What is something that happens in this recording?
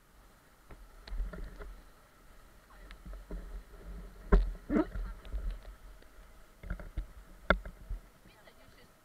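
Paddles splash and knock against the water.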